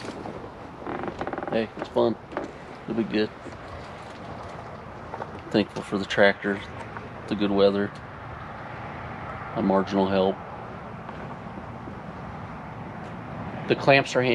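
A man talks casually and close by, in bursts with pauses.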